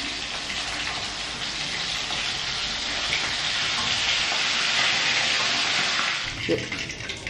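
Food sizzles and crackles loudly in hot oil.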